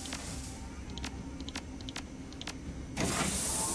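Keypad buttons beep as a code is entered.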